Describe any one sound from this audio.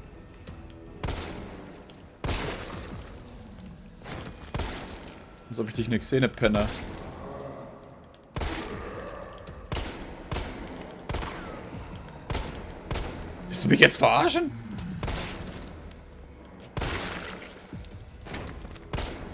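Pistol shots ring out one after another in a hard, echoing space.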